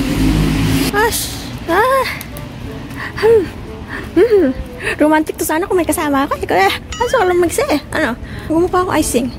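A young woman talks and laughs close to the microphone.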